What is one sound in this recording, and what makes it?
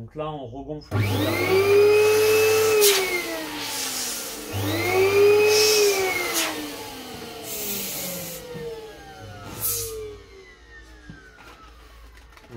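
Rubber balloons squeak as they are twisted together.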